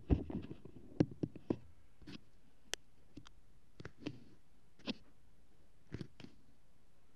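A paper packet rustles and crinkles in a hand.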